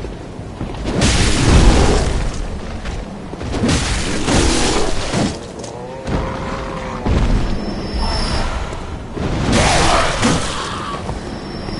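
Heavy blows land with loud crunching thuds.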